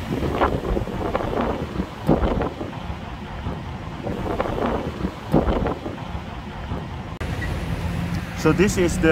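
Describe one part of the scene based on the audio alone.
Cars drive past on a road nearby.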